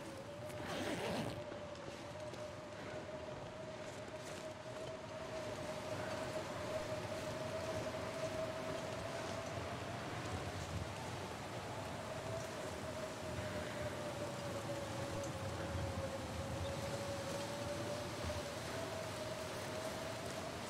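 A snowstorm wind howls and roars steadily outdoors.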